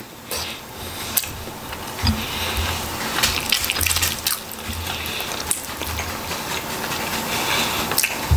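Fingers tear and pull apart cooked chicken meat.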